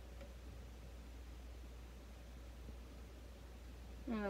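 Liquid trickles from a bottle into a glass.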